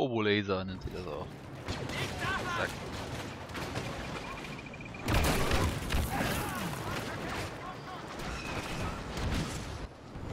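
Laser blasters fire in rapid bursts.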